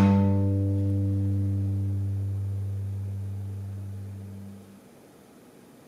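A small chamber ensemble holds a low sustained chord that slowly fades away.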